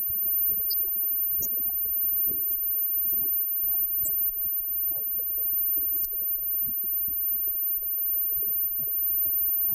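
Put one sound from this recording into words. Electric guitars strum and ring.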